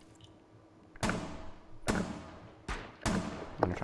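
A rifle fires two quick shots indoors.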